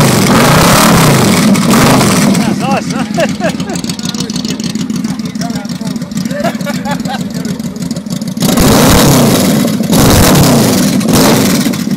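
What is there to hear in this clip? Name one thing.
A motorcycle engine idles with a deep, throbbing exhaust rumble.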